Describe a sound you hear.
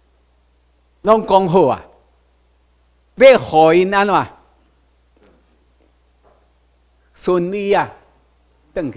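An older man speaks into a microphone in short bursts, heard over a loudspeaker in a room.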